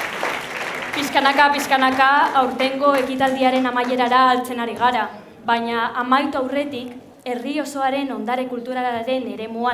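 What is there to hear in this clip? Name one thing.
A young woman speaks calmly through a microphone in a large hall.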